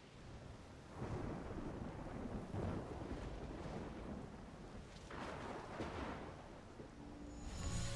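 Rain pours steadily.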